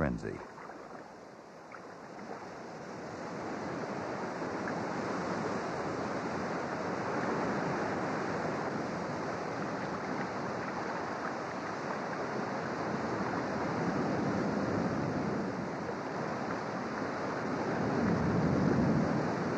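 Waves slosh and churn on open water.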